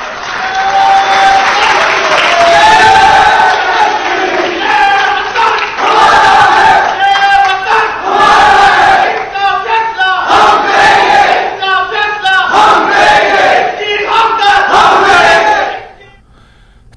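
A crowd chants slogans loudly in a large echoing hall.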